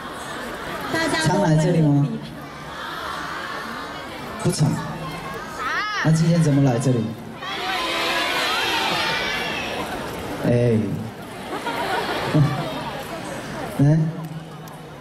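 A young man sings through a microphone over loudspeakers.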